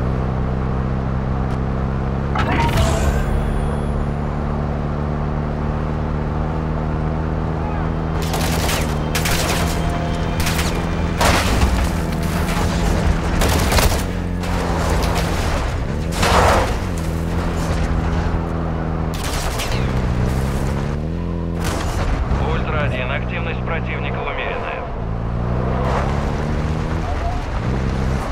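Tyres rumble over rough dirt ground.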